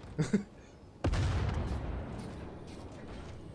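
A low rumbling explosion booms.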